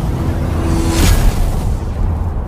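A powerful blast erupts with a loud roar.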